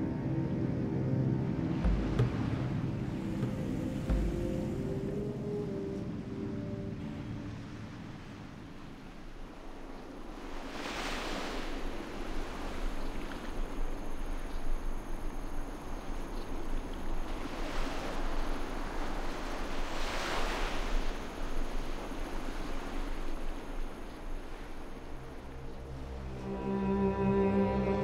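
Waves wash gently against a wooden ship's hull.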